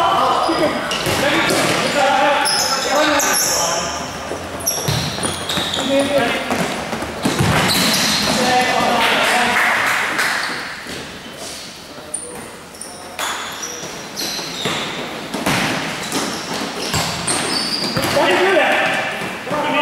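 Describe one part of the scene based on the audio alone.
Sneakers squeak sharply on an indoor court.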